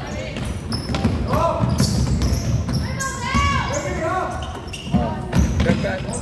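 Young girls shout and call out in an echoing hall.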